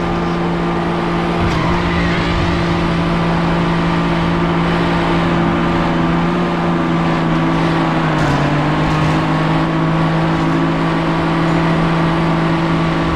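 A race car engine hums steadily at high speed.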